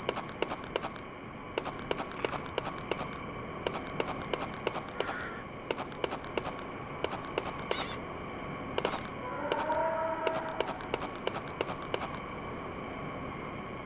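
Footsteps run along a dirt path.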